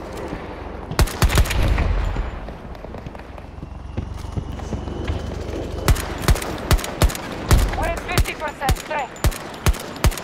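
A rifle fires sharp, loud shots, one after another.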